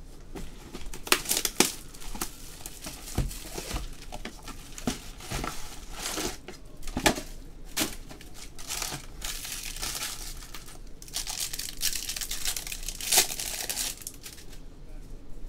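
Foil card wrappers crinkle and rustle as hands handle them.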